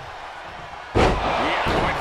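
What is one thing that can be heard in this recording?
A heavy body slams down hard onto a wrestling mat.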